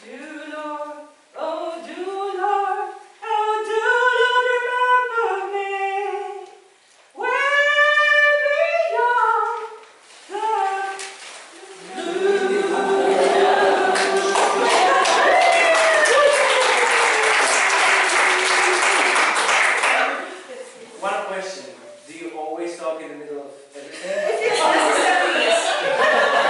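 A choir sings short phrases together, stopping and starting.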